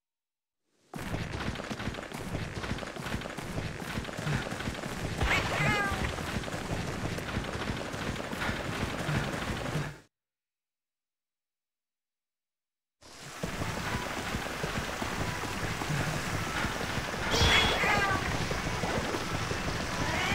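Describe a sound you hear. Footsteps run quickly over grass and ground.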